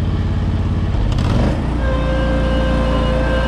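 A mower engine shifts and settles into a higher, steady hum.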